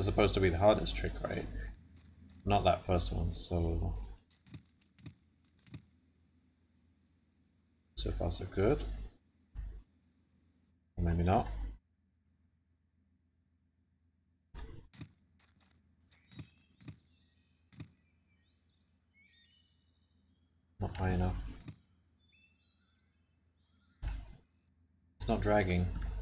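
A young man talks casually into a nearby microphone, in short bursts.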